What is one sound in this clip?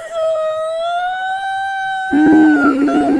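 A boy screams loudly in a long, high wail.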